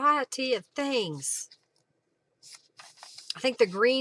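Book pages turn with a soft flap.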